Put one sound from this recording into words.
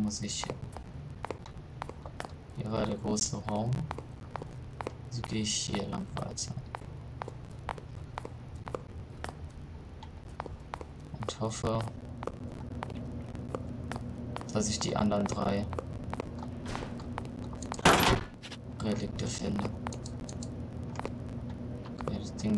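Footsteps tread slowly on a hard tiled floor.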